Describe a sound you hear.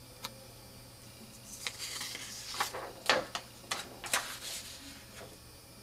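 A sheet of card rustles as it is handled.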